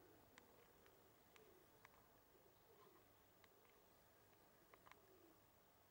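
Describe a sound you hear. A flock of pigeons flaps and claps its wings overhead.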